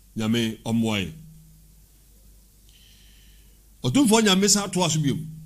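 A man speaks close into a microphone in a slow, chanting voice.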